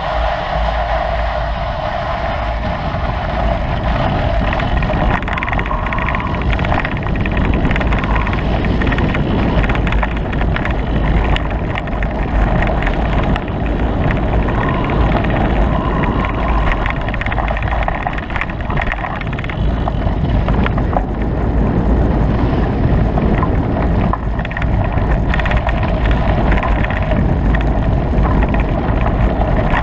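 A motorbike engine drones steadily and rises and falls in pitch.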